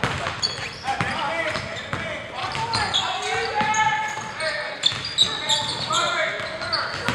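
Sneakers squeak sharply on the gym floor.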